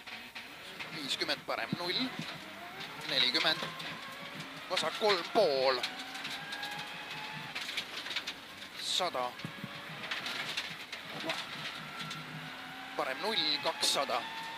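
A man reads out notes in quick bursts through a helmet intercom.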